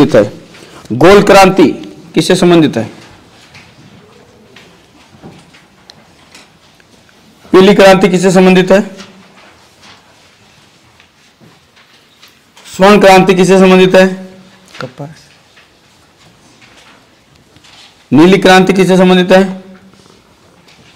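A man reads out loudly and clearly, close to a microphone.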